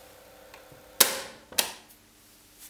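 A button clicks sharply on a cassette recorder.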